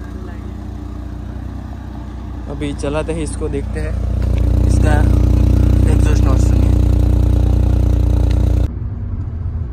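A car engine idles and revs with a deep rumbling exhaust.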